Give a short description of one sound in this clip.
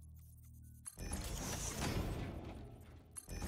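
A shimmering magical effect hisses and crackles.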